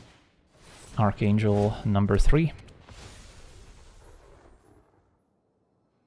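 Magical chimes and whooshes play as cards are cast in a computer game.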